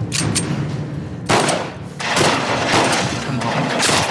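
Gunshots ring out in quick bursts.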